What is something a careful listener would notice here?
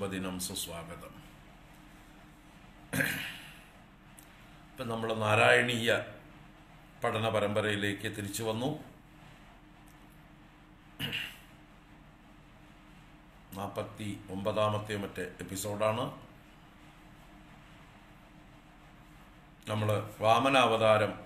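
A middle-aged man speaks calmly and close to the microphone, in bursts with pauses.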